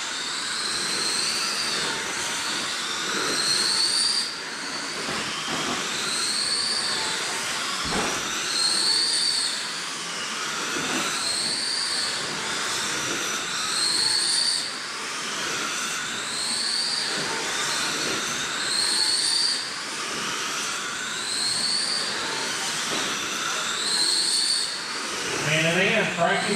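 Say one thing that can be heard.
Small electric model cars whine loudly as they race past, rising and falling in pitch again and again.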